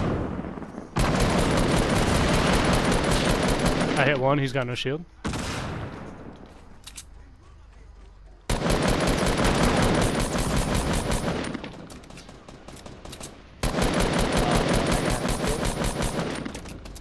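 Rapid gunfire rattles in long, loud bursts.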